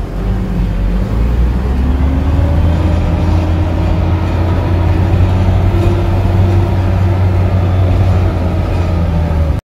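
A car engine revs up and strains louder.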